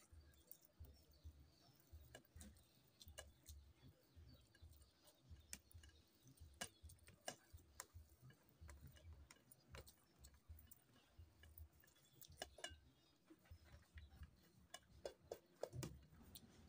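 A man chews and smacks his lips loudly, close up.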